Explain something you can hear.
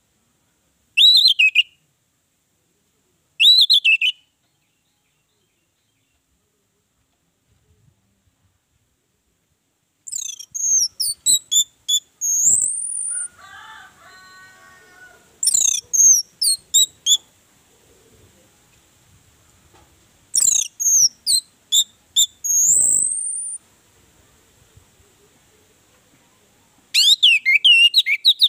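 An orange-headed thrush sings in short loud whistled phrases.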